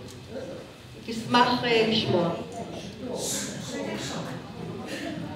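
A woman reads aloud calmly into a microphone over a loudspeaker.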